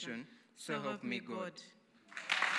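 A woman reads out calmly through a microphone.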